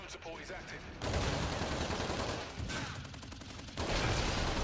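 An automatic rifle fires.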